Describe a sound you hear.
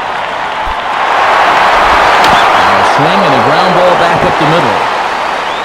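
A crowd cheers louder.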